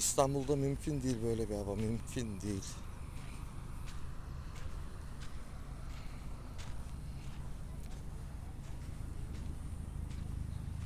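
Small ripples lap softly at the shore.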